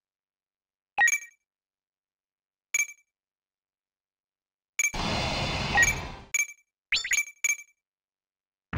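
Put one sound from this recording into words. Short electronic beeps sound as menu choices are made.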